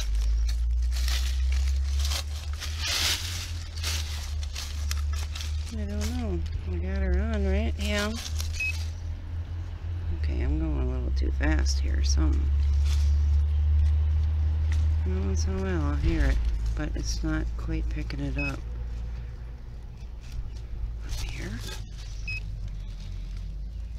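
A trowel scrapes and digs into dry soil and leaves.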